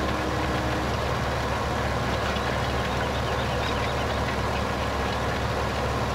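A cultivator rattles and scrapes through soil.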